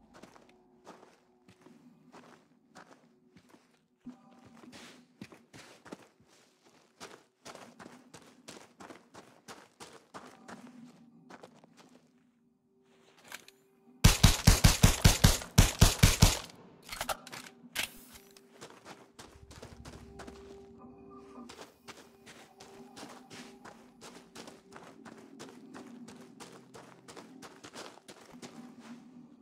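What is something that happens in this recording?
Footsteps crunch steadily on sandy ground.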